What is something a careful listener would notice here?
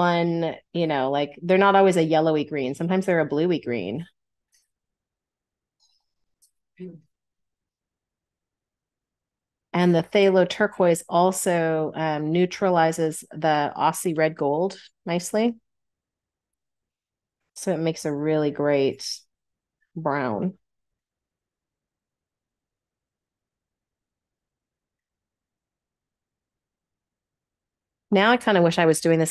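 A middle-aged woman talks calmly through an online call, in bursts with pauses.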